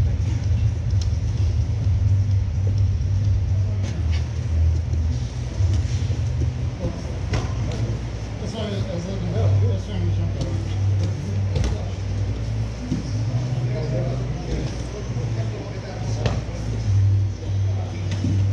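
Bodies thump and slide on a padded mat.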